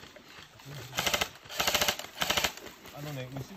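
Rifles fire in quick bursts nearby.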